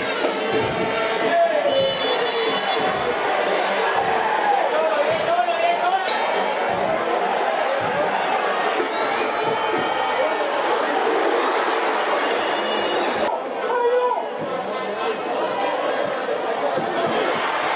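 A large stadium crowd roars and chants throughout.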